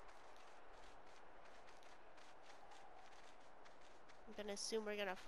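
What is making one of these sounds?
Paws crunch quickly through snow.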